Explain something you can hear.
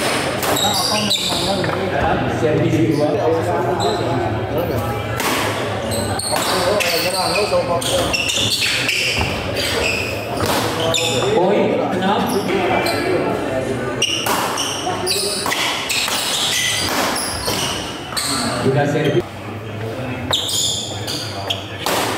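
Men chatter and call out around the court.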